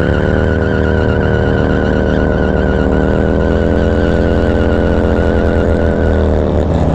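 A motorcycle engine rumbles loudly close by, revving steadily.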